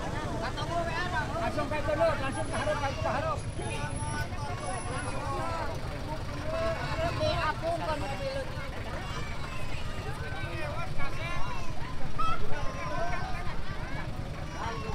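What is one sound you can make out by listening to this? A crowd of men and women chatter loudly outdoors nearby.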